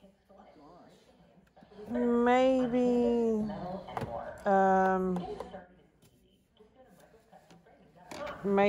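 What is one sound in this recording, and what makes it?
Plastic drawers rattle and click under a hand.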